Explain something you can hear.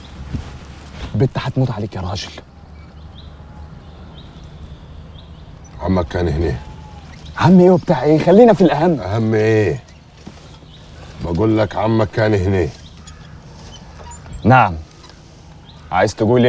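An older man replies in a low voice.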